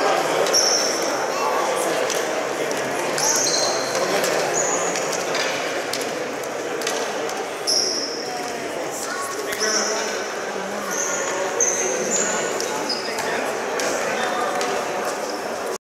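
Lacrosse sticks clack and tap together.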